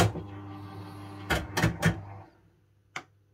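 A fruit machine's reels spin with a whirring hum, then stop.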